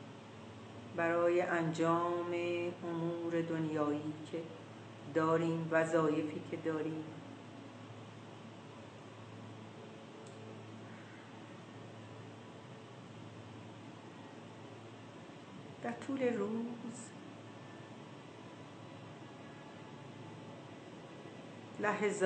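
An elderly woman speaks slowly and calmly into a nearby microphone, with long pauses.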